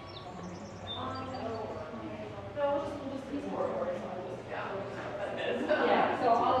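Adults talk nearby indoors.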